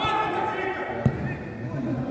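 A football is kicked hard on artificial turf.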